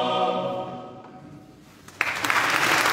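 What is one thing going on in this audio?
A men's choir sings in a large echoing hall and the final chord dies away.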